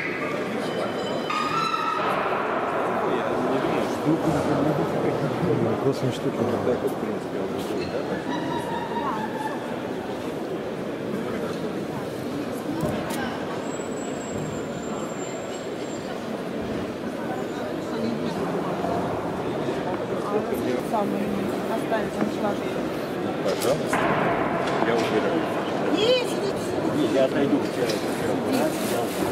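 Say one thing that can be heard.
A crowd of men and women chatters in a large, busy hall.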